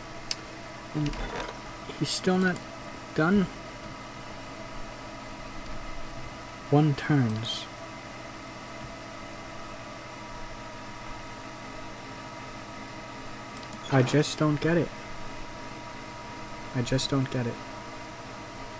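A man speaks calmly in short bursts into a close microphone.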